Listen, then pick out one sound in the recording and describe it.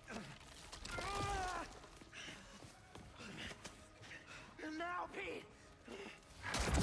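A man groans and strains in pain.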